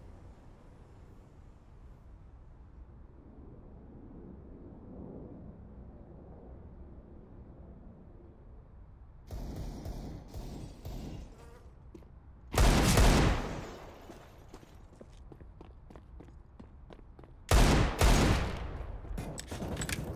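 Footsteps run steadily on hard ground.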